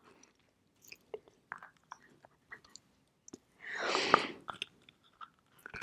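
A young woman bites and crunches a hard lump close to a microphone.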